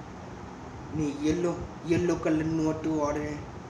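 A young man speaks close by, in a calm voice.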